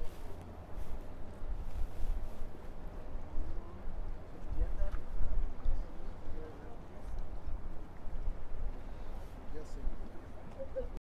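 Small waves lap gently on open water.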